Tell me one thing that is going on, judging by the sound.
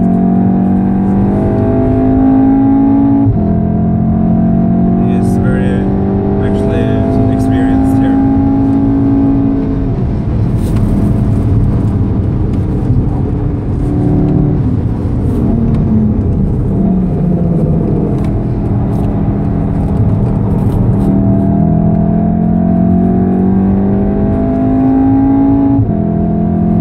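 A car engine roars loudly, its pitch climbing steadily and dropping sharply with each gear change.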